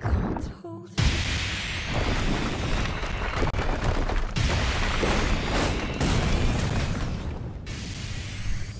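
Energy beams blast with a loud, rushing roar.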